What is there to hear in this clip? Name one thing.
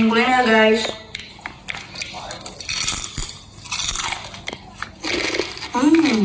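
A young woman crunches crispy snacks while eating.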